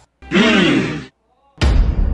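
A young man speaks close by.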